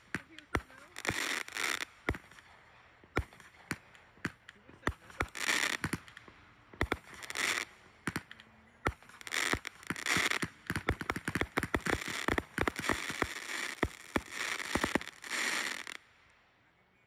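Fireworks crackle and hiss in bursts of sparks.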